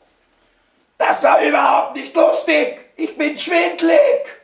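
A middle-aged man speaks in a lively, put-on voice close by.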